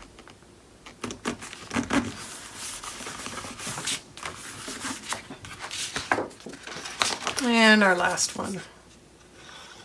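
Sheets of paper and card rustle and slide as hands move them.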